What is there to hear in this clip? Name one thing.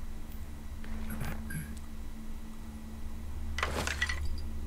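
Soft interface clicks and chimes sound.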